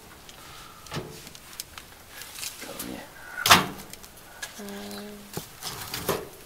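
A metal stove door clanks as it is opened and shut.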